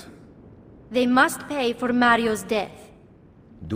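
A woman speaks angrily, close by.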